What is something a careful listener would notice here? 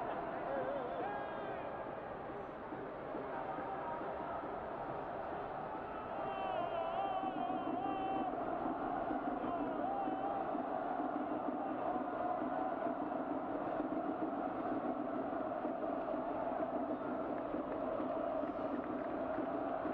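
A large crowd of fans sings and chants in a big open stadium.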